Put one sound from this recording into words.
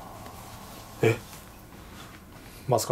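A man close by makes brief short vocal sounds.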